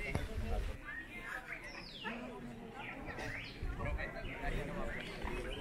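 People chatter in the distance.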